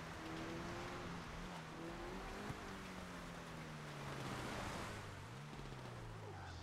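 A car engine roars steadily, shifting pitch as it drives.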